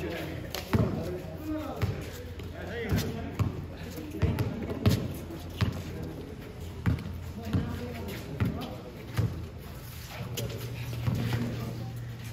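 Sneakers squeak and scuff on the concrete.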